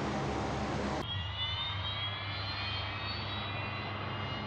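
A propeller engine drones muffled, heard from inside a cockpit.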